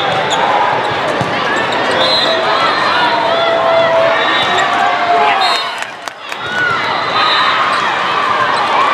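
Shoes squeak sharply on a court floor in a large echoing hall.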